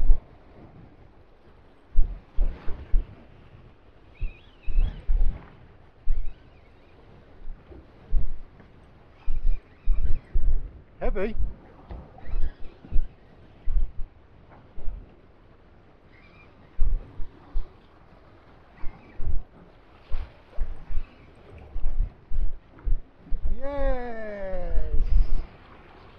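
Wind buffets a microphone in gusts outdoors.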